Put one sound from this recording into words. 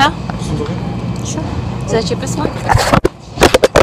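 A young boy talks close to a phone microphone.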